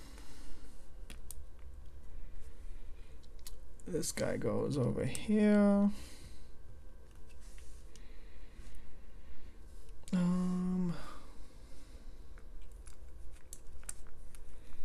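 Plastic toy bricks click and rattle as they are handled and pressed together.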